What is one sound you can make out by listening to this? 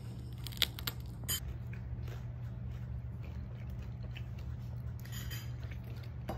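A man chews food close by.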